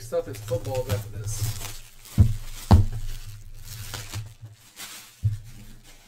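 Plastic wrapping crinkles and rustles as hands tear it open.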